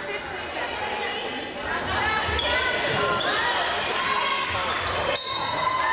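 A volleyball thumps off a player's hands.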